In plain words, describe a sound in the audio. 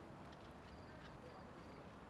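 Footsteps pass close by.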